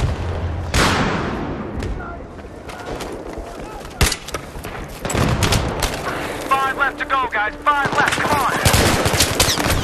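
Gunfire and explosions crack and boom nearby.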